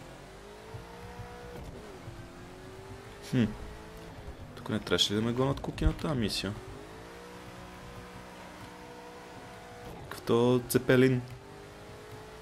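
A car engine hums steadily, its pitch rising and dropping as it changes gear.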